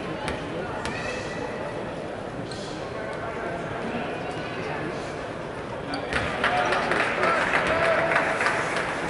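A large indoor crowd murmurs in an echoing arena.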